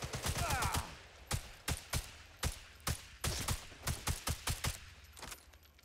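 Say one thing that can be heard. A rifle fires rapid shots in quick bursts.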